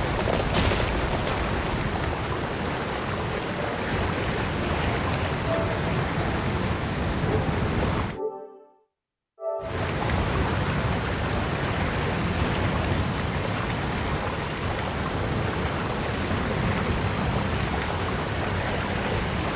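Water splashes and churns as a horse wades through it.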